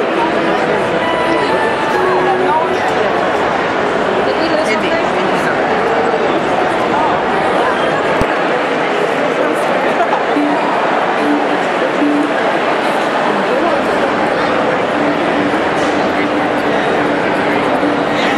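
A crowd chatters all around in a large echoing hall.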